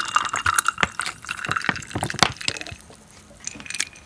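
Liquid pours from a pouch into a glass.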